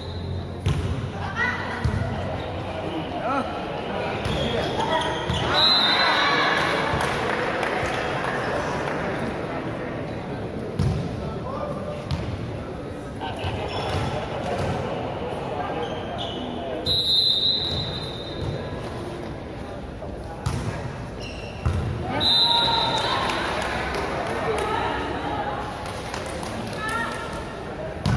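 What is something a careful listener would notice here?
A large crowd cheers and chatters in an echoing hall.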